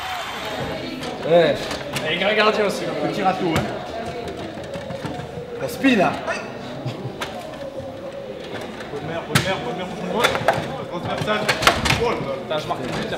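A crowd of adults chatters and laughs nearby.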